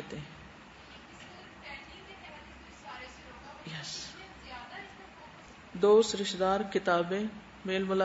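A woman speaks calmly and close to a microphone.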